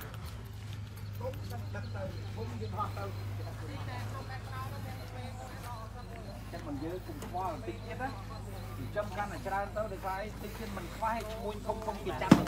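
A group of men and women talk among themselves nearby, outdoors.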